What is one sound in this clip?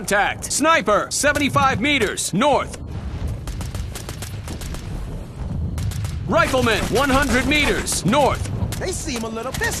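A rifle fires single sharp shots.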